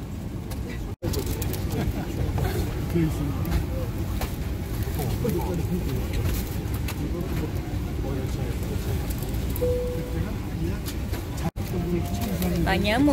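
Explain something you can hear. A steady low drone of an aircraft cabin fills the air.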